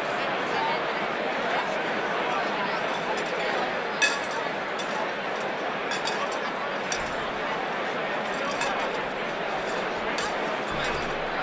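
A large crowd of men and women chatters at once in a big echoing hall.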